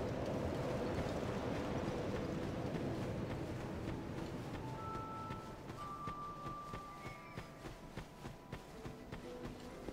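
Footsteps run quickly over the ground.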